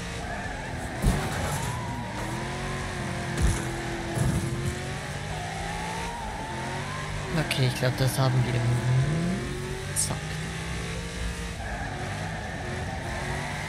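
Metal crunches as a car hits debris.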